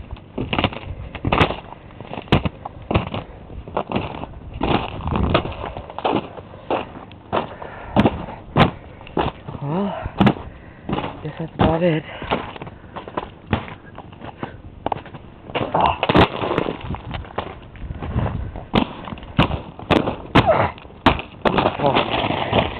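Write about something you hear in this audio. Footsteps crunch through snow close by.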